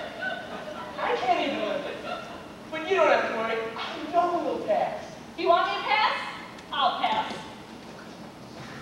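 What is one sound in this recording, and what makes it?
A young man sings on a stage.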